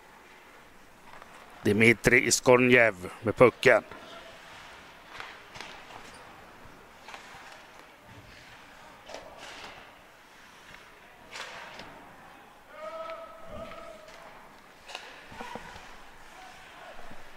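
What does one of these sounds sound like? Hockey sticks clack against a puck on ice.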